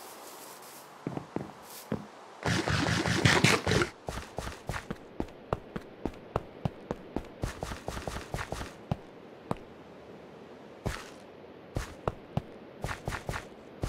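Footsteps tap quickly and evenly across a hard floor.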